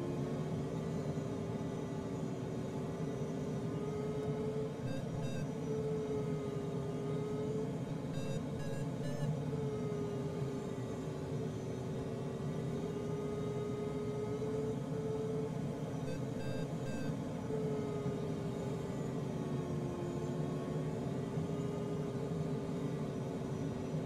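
Air rushes steadily past a glider's canopy.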